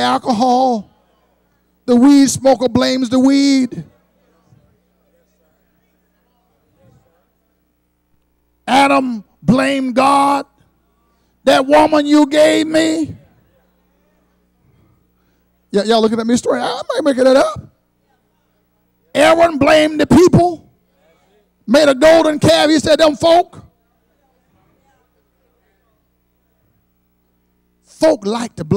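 An elderly man preaches with animation through a microphone, in bursts with long pauses.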